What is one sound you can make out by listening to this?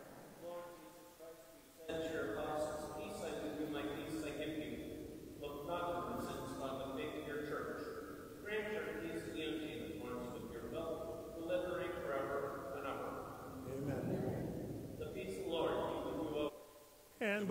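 A man chants prayers through a microphone in a large echoing hall.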